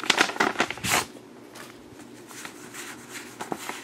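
Paper cards shuffle and rustle between hands.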